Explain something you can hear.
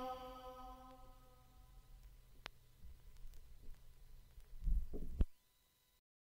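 A stylus crackles softly in the run-out groove of a spinning record.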